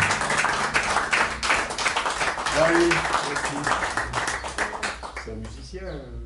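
An acoustic guitar is strummed briskly.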